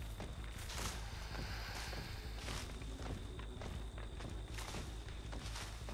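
Dry corn stalks rustle as something pushes through them.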